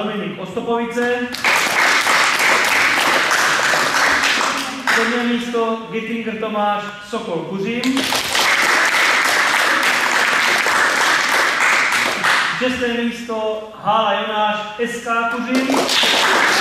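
A group of children sing together in between the clapping.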